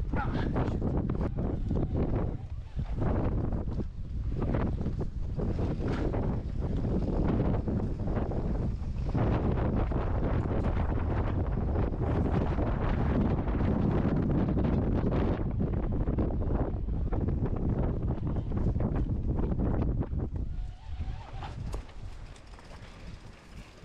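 Wind buffets loudly and roughly outdoors.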